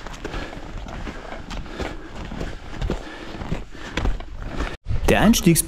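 Boots crunch steadily through snow.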